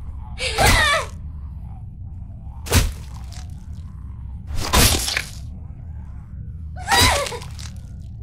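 Heavy blows thud wetly, one after another.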